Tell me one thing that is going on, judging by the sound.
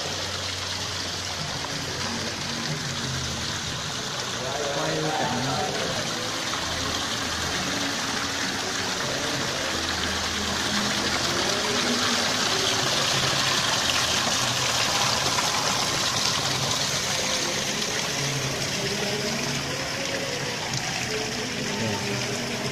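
Water trickles and splashes steadily over rocks into a pool.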